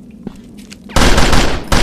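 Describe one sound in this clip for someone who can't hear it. A gun fires a loud burst of shots.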